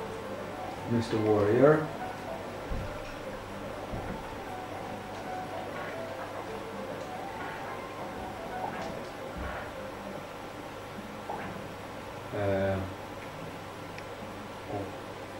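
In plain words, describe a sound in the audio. Electronic game music plays softly throughout.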